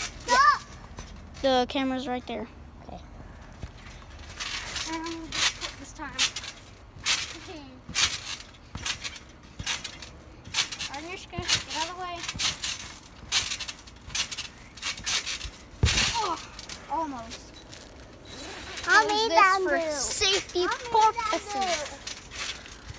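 Children shout and squeal with excitement close by.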